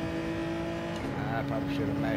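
A racing car engine shifts up a gear with a quick drop in pitch.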